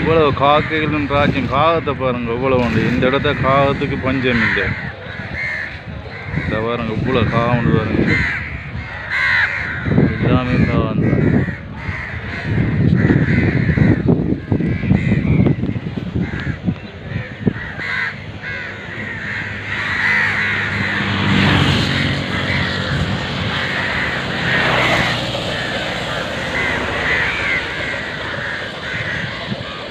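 Crows caw loudly from overhead wires and the air.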